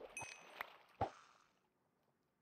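A fishing line is reeled in with a quick pop.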